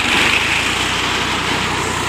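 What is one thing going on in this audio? A tractor engine rumbles nearby.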